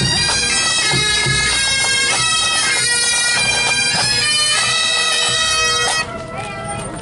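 A pipe band's bagpipes play a loud, steady tune close by.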